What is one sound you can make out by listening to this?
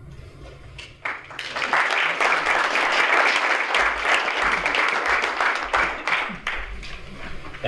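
A small group of people applaud.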